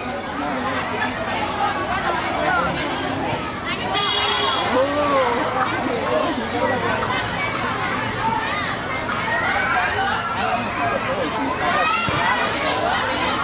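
A crowd of women and children chatter all around outdoors.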